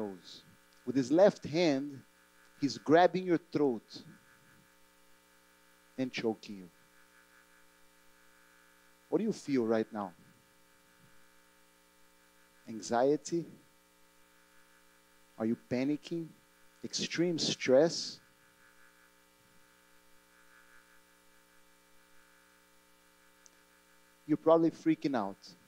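A man speaks calmly through a headset microphone, with long pauses.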